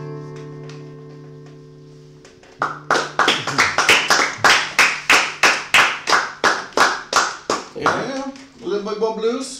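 Two acoustic guitars strum chords in a quick, steady rhythm.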